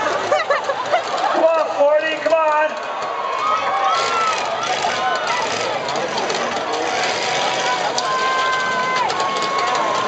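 Metal and body panels crunch as motorhomes collide.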